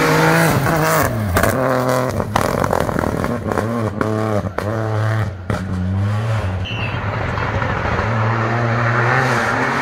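A rally car engine roars loudly close by, revving up and down through gear changes as it speeds past.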